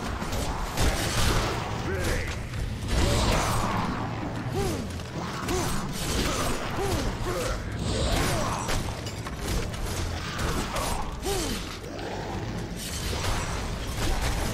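Blades clash and strike repeatedly in a fierce fight.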